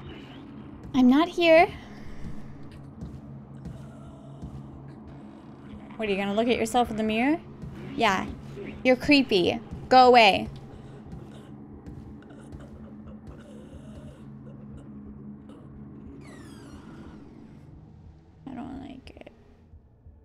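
A young woman speaks with animation into a microphone, close up.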